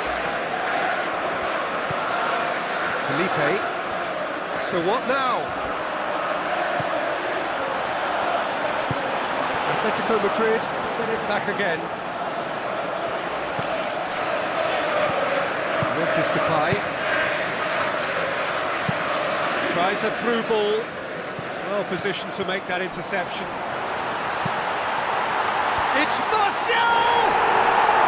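A stadium crowd roars and chants steadily throughout.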